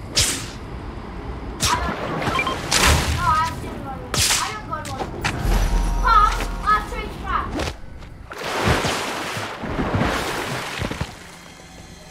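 Web lines whoosh in quick bursts as a figure swings through the air.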